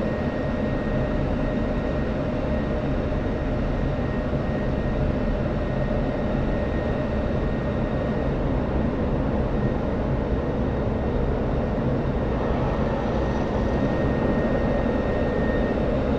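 Wind rushes past a jet canopy.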